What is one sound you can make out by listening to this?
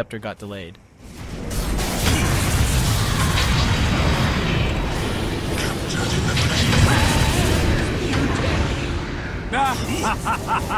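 Magic spells crackle and blast in a busy fight.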